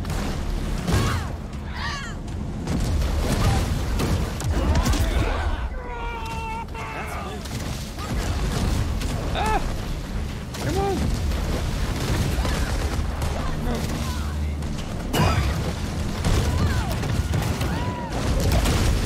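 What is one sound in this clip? Water splashes and churns loudly around boats.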